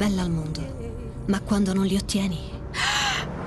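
A young woman speaks softly and warmly, close by.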